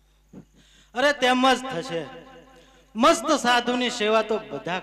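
A man sings loudly through a microphone and loudspeakers.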